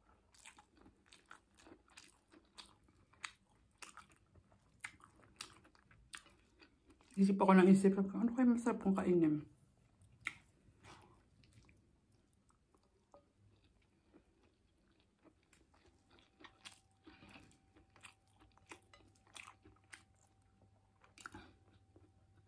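A young woman chews food loudly and smacks her lips close to a microphone.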